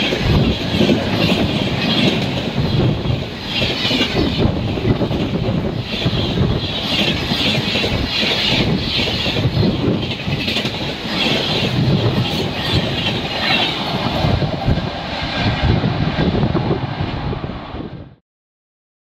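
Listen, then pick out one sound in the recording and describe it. A train rushes past close by with a loud rumble.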